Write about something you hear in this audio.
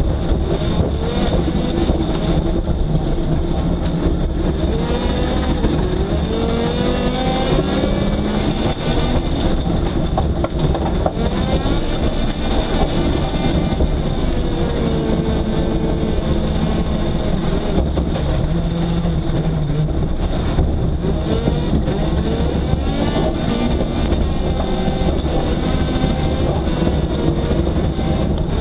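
A car engine roars and revs up and down close by from inside the car.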